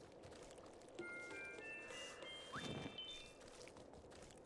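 Bright coin chimes ring out in a quick rising run.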